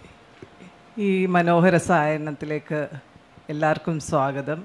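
A woman speaks clearly through a microphone and loudspeakers.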